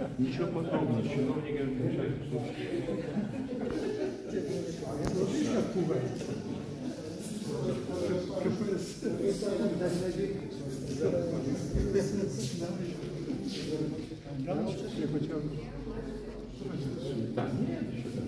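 Elderly men talk with each other up close.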